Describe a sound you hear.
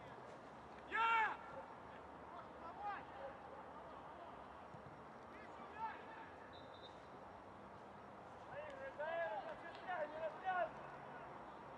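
Young men shout to each other across an open outdoor field.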